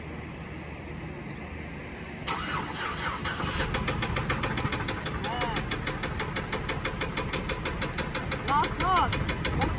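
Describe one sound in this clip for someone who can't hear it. A truck engine idles with a deep, steady rumble.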